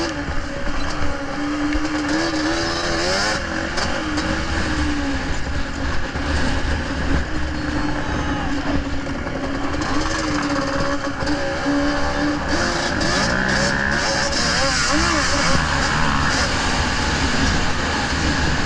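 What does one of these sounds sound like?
Tyres crunch and spray over snow and gravel.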